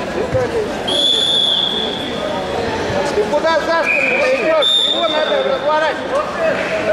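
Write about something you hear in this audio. A referee blows a whistle in long blasts.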